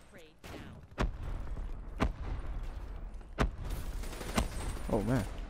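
Gunshots crack in sharp single bursts.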